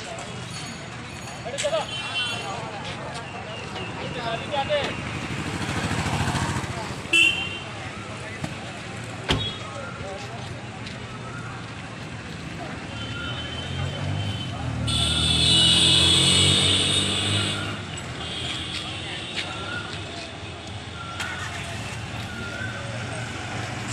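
Motorbike engines idle and rev.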